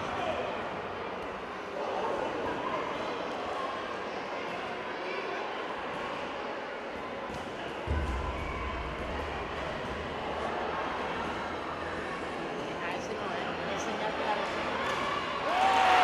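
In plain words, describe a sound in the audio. A crowd of young men and women chatter in a large echoing hall.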